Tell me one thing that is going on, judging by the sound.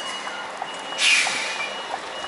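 A truck cab door slams shut.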